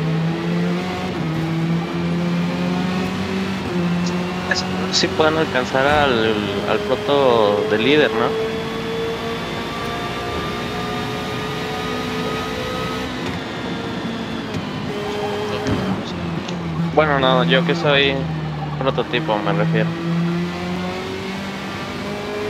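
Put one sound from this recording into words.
A racing car engine roars at high revs, rising and dropping in pitch as gears change.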